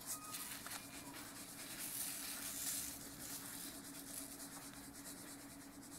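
Glitter rustles and hisses as it is shaken from a jar.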